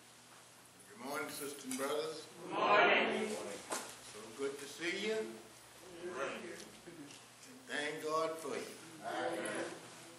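A man speaks with feeling into a microphone in an echoing hall.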